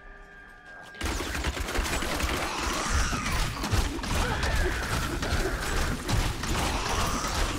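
Spells crackle and boom in a fast game battle.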